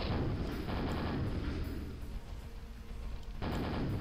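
A nail gun fires rapidly in a game.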